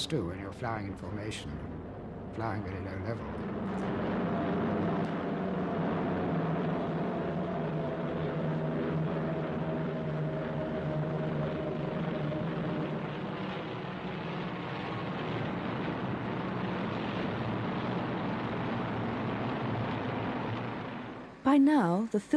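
Aircraft propeller engines drone steadily.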